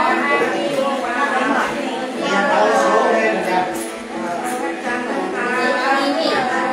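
An elderly woman sings in a steady, wavering voice close by.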